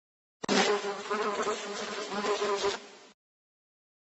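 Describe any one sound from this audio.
A fly buzzes close by.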